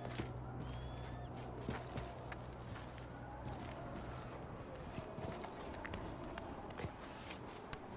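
Boots crunch on rocky ground with steady footsteps.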